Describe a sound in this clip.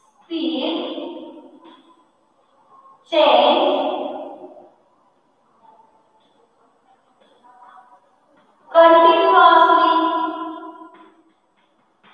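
A woman speaks slowly and clearly, close by.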